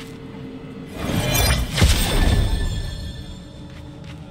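A magical whoosh swells loudly and shimmers, then fades.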